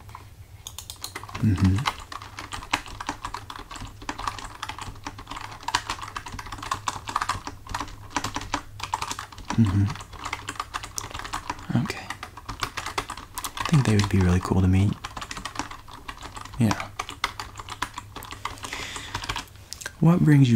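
Fingers type on a computer keyboard.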